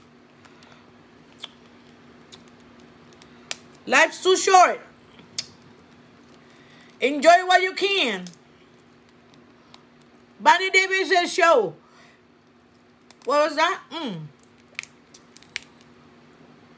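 Crawfish shells crack and snap in fingers.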